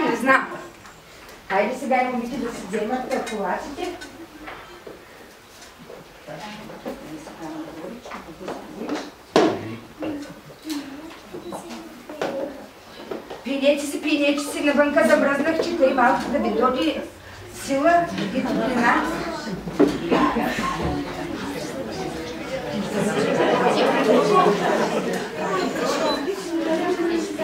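A woman speaks to children in a calm, clear voice in an echoing room.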